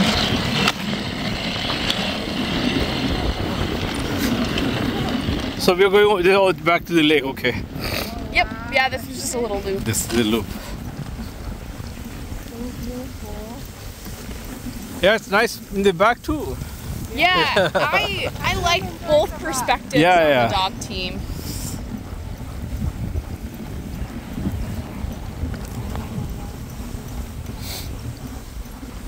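Sled runners hiss and scrape over snow.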